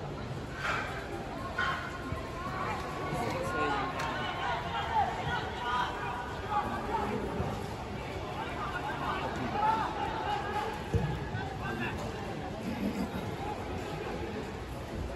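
Young men shout and call to each other across an open field, far off.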